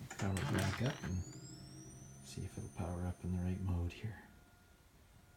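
An electronic prop wand powers up with a rising whine.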